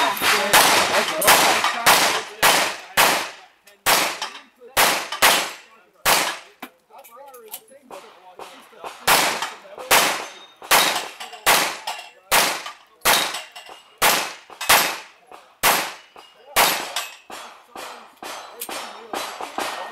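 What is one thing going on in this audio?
Bullets clang off steel plate targets.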